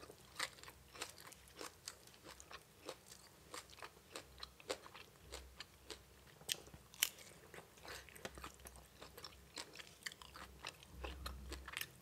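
Food squelches wetly as fingers pick through a sauce.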